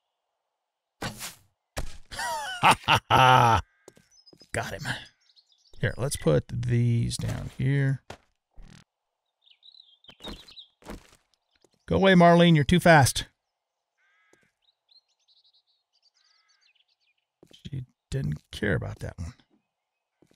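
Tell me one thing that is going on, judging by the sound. A young man talks casually and animatedly into a close microphone.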